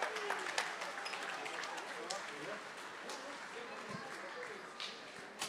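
A drummer strikes drums and cymbals.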